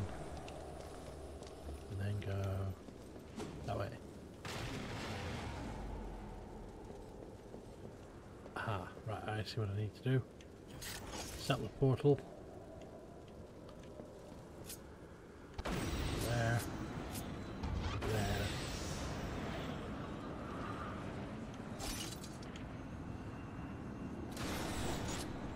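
Game sound effects whoosh and blast.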